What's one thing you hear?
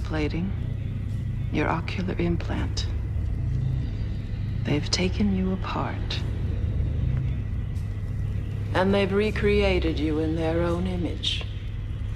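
A woman speaks calmly and quietly up close.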